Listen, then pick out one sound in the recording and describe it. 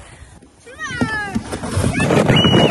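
A plastic sled scrapes and hisses over snow.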